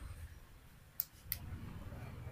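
A plastic syringe cap clicks twice.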